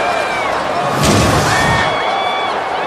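A whooshing swoosh sweeps past.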